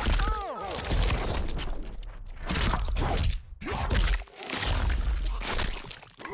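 A blade slices with wet, gory splatters.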